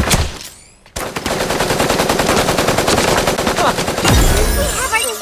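Rapid automatic gunfire rattles close by.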